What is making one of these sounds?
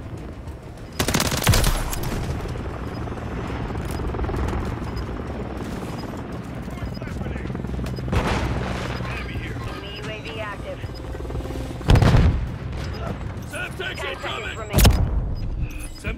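Gunfire rings out in short, loud bursts.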